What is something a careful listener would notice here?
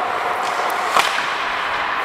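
A hockey puck clacks off a stick.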